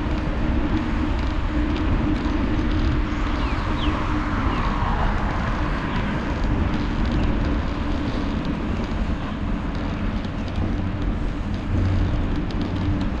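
Tyres hum steadily on smooth pavement.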